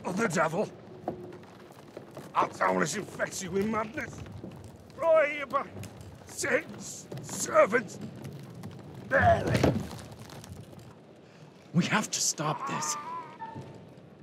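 A man speaks tensely and urgently, close by.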